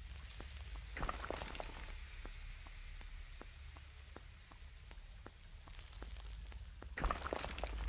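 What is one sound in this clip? Hands and feet tap and scrape on a stone wall as a figure climbs.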